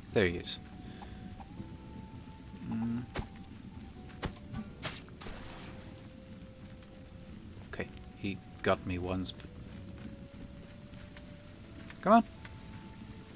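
A man speaks into a close microphone in short, casual bursts.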